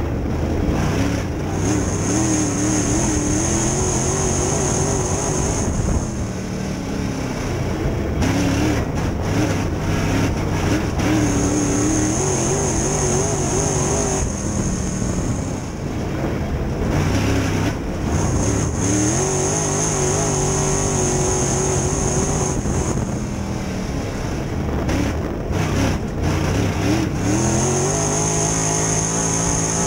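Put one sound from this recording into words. A race car engine roars loudly from close by, revving up and down again and again.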